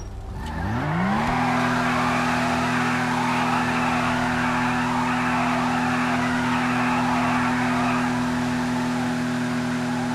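Tyres squeal and screech as a car spins its wheels.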